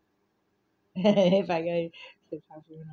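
An elderly woman laughs out loud.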